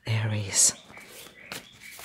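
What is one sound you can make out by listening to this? Playing cards are shuffled in a hand.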